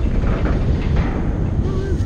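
A sharp energy blast bursts nearby.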